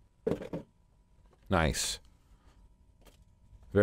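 A cardboard lid slides off a box.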